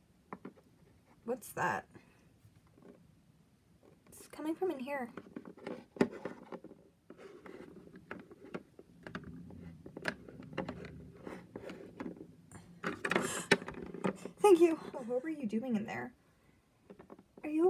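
Small plastic toys knock and tap on a hard surface.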